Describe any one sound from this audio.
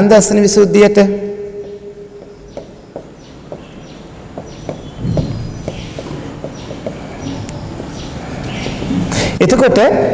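A pen taps and squeaks on a board.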